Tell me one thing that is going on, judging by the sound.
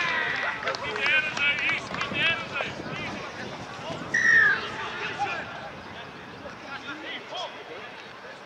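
Men shout and call out outdoors.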